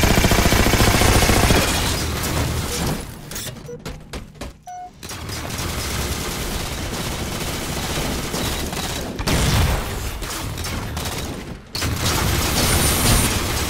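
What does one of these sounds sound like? An energy weapon fires rapid crackling blasts.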